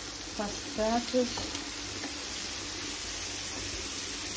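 A wooden spoon scrapes in a frying pan.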